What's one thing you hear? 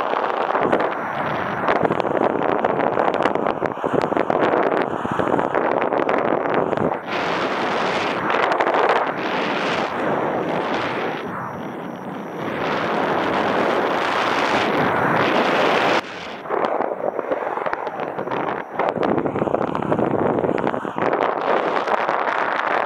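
Strong wind rushes and buffets loudly throughout.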